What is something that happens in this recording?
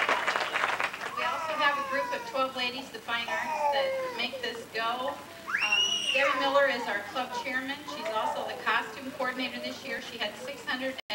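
A young girl speaks with animation through a microphone and loudspeaker.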